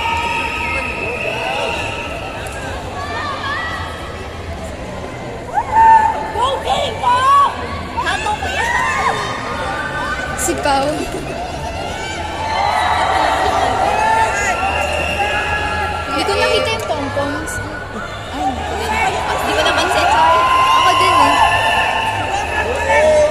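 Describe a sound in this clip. A crowd of young people shouts and cheers in a large echoing hall.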